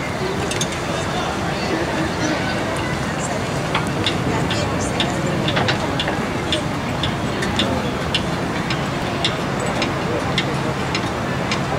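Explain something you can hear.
A gamelan ensemble plays ringing metal gongs and metallophones outdoors.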